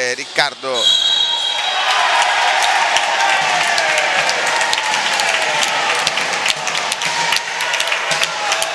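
A crowd cheers and applauds in an echoing hall.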